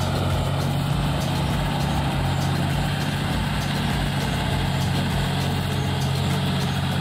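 A tractor's tiller churns through wet soil.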